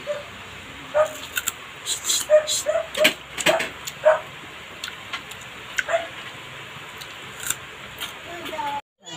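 A woman chews crunchily close to a microphone.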